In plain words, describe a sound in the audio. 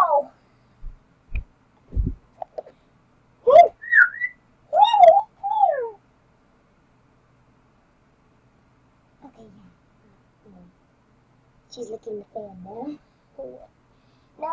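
A young girl talks and squeals close by, high and lively.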